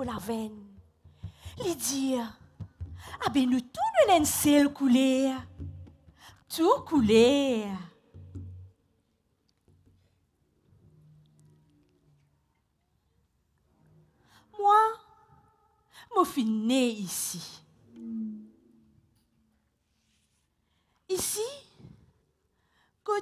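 A woman sings expressively into a microphone, with pauses between phrases.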